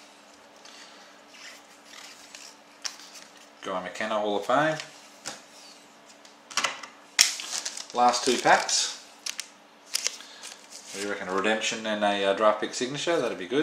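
Playing cards rustle and flick as they are handled.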